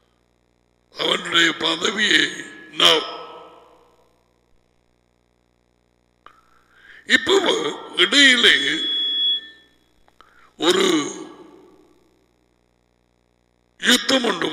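A middle-aged man speaks with animation into a headset microphone, in bursts with pauses.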